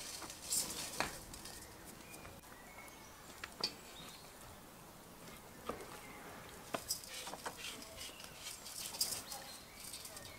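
Raw meat pieces plop and slap into a metal pot.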